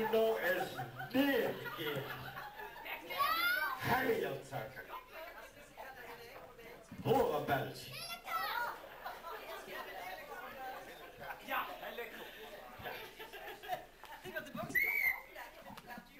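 Adults talk and laugh in a large echoing hall.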